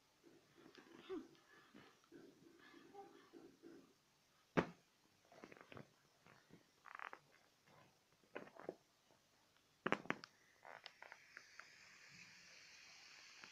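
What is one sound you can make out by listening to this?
An inflatable plastic ball crinkles and squeaks as it is handled.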